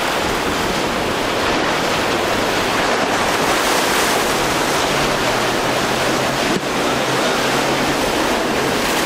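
Water rushes and splashes against a speeding boat's hull.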